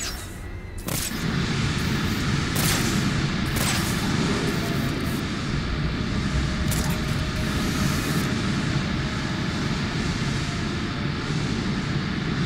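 Flames roar steadily from a burst pipe.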